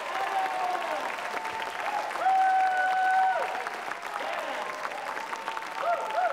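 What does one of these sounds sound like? People clap their hands along with the music.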